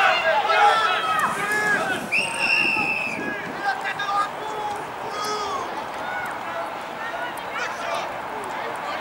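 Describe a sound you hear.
Young men shout to each other outdoors at a distance.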